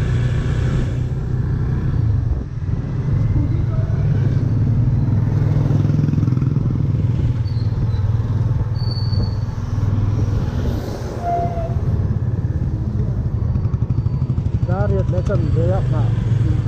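Wind buffets past the rider.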